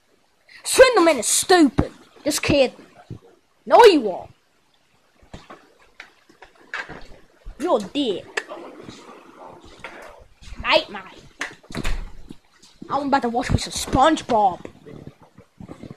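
A young child speaks excitedly up close.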